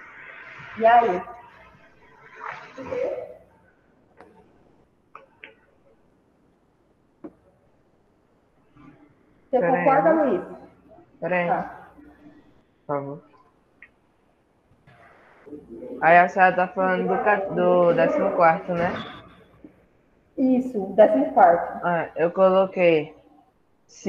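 A woman speaks calmly through an online call, with pauses.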